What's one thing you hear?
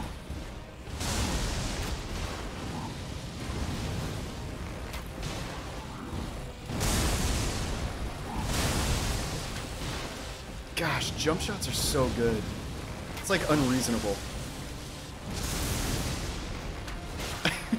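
Fire roars and blasts in bursts.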